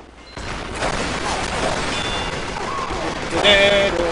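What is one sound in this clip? Gunshots ring out in quick succession.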